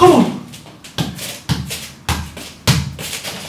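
A ball thuds as a man kicks it.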